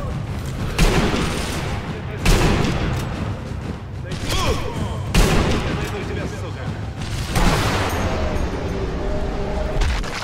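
A rifle fires loud single shots that echo and fade.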